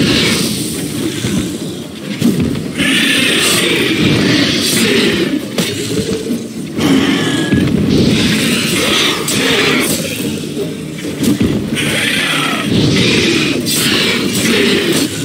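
Fire crackles and bursts in sparks.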